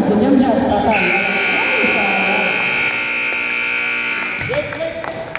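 A referee blows a long, shrill whistle in a large echoing hall.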